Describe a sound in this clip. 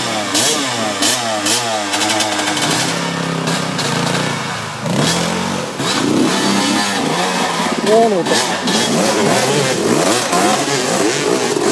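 Dirt bike engines rev and sputter loudly, rising and falling in pitch.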